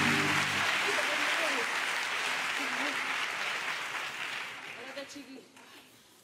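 A young woman sings out loudly.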